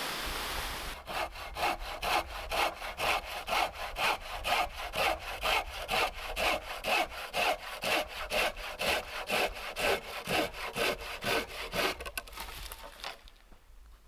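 A hand saw cuts through wood up close with quick, even strokes.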